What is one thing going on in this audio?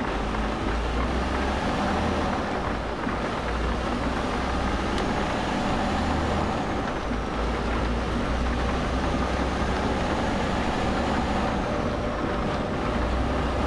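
Tyres roll along a road.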